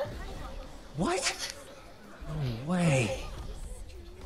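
A young man speaks in surprise, heard close.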